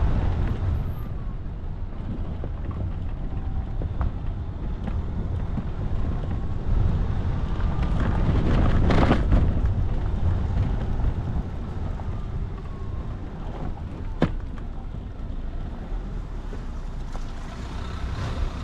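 Tyres crunch over a dirt track.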